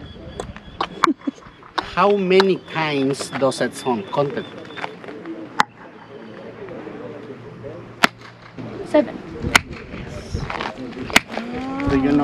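A man claps his hands sharply, and the claps echo.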